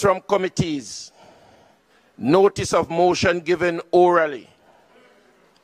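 A man speaks calmly and formally into a microphone.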